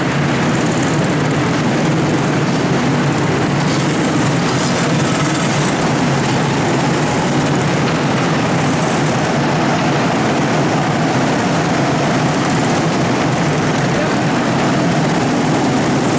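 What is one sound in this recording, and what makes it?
Go-kart engines buzz and rumble loudly in an echoing hall.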